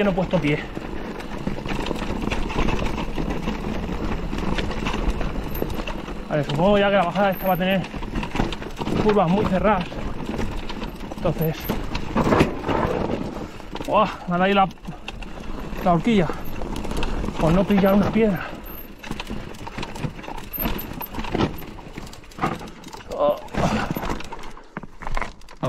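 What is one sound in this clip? Mountain bike tyres crunch and rattle over loose rock.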